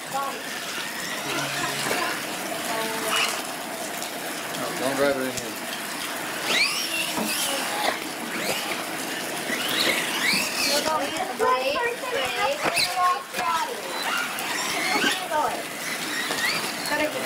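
A small electric motor whines as a toy truck races and revs.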